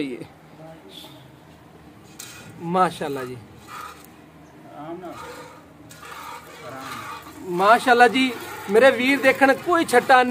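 Milk squirts in thin streams into a metal bucket.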